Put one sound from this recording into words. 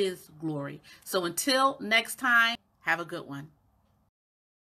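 A woman talks cheerfully and close up.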